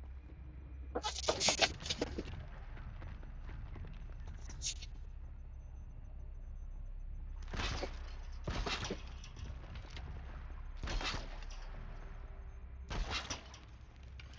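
Arrows whoosh and strike in bursts.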